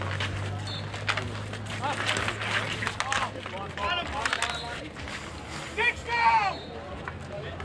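Hockey sticks clack against a ball and scrape on asphalt outdoors.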